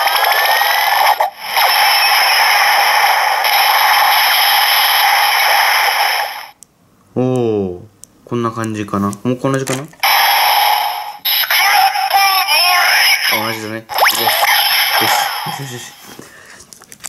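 A toy belt plays loud electronic music and sound effects through a small speaker.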